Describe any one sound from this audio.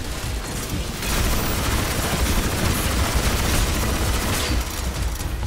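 A fiery blast roars loudly and then dies down.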